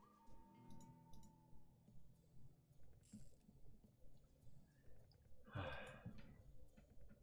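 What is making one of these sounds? Slot game reels spin with quick clicking and chiming.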